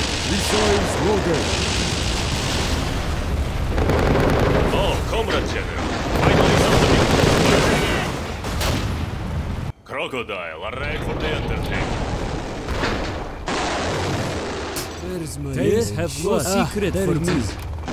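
Explosions boom and rumble in a battle.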